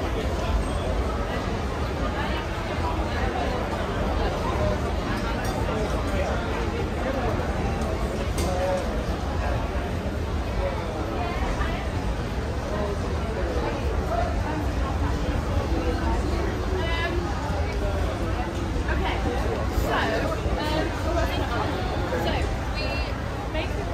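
A busy crowd chatters nearby.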